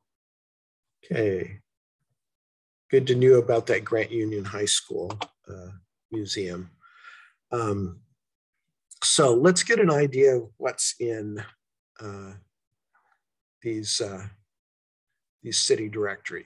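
An elderly man speaks calmly through a microphone on an online call.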